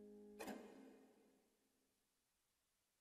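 A piano plays a final chord that rings and slowly fades away.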